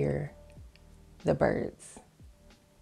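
A woman speaks briefly close to a microphone, with pauses.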